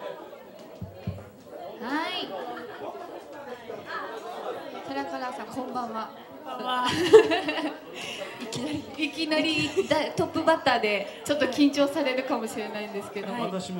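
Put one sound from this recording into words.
A second woman speaks brightly into a microphone.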